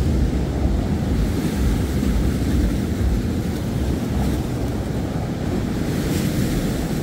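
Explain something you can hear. Rough sea waves crash and wash against a wall.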